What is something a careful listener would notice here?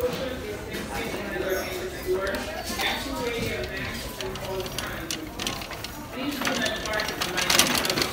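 A metal shopping cart rattles as it rolls over a hard floor.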